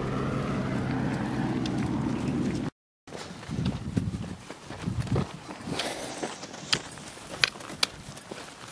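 Footsteps crunch on dry, gravelly ground.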